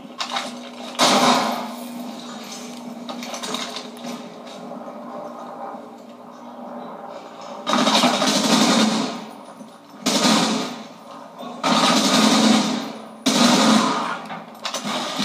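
Loud bursts of gunfire and blasts ring out again and again.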